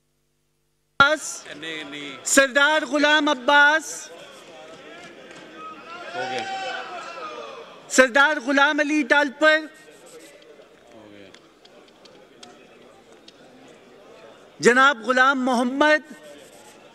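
A crowd of men chants loudly in unison in a large echoing hall.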